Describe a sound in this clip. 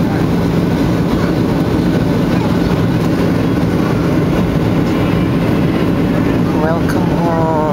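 Jet engines roar steadily in the cabin of an airliner in flight.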